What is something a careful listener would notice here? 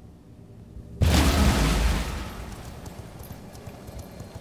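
A deep magical whoosh swells up suddenly and fades.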